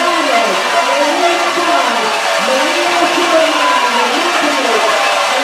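Swimmers splash steadily through the water.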